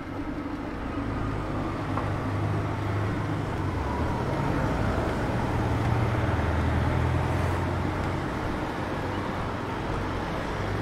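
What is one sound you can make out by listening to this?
A car engine rumbles as a car drives past nearby.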